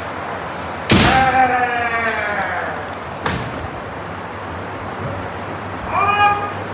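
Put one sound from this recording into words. A man shouts a long, loud cry that echoes through a large hall.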